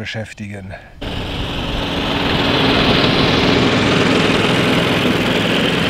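A lawn mower engine drones, growing louder as it approaches.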